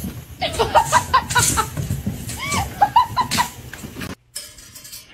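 A kitten's paws patter and skid across a wooden floor.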